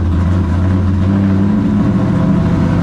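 A race car engine's pitch rises as it speeds up.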